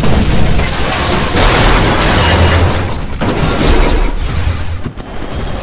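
Loud explosions boom and roar.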